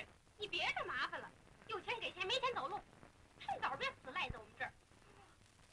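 A woman speaks with agitation close by.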